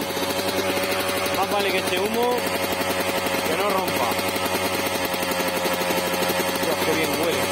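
A dirt bike engine idles with a fast, steady putter close by.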